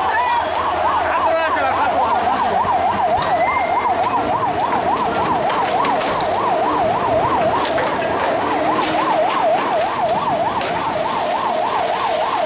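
A large crowd roars and shouts outdoors.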